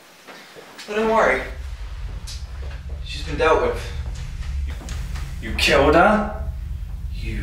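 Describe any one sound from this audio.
A young man talks back with anger.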